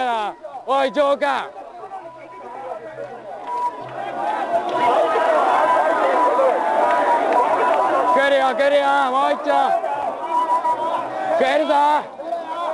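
A large crowd of men and women shouts and chants outdoors.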